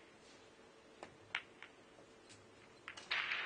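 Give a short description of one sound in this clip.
Snooker balls click together sharply.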